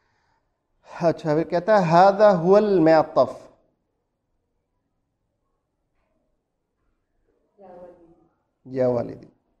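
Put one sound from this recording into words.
A man speaks calmly and clearly close by, pausing between phrases.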